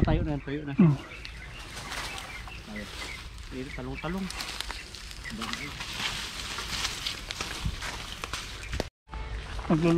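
Leaves and twigs rustle underfoot.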